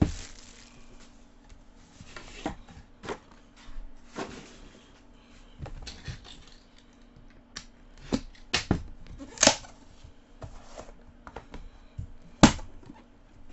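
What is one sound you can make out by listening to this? A cardboard box is handled and set down with soft knocks.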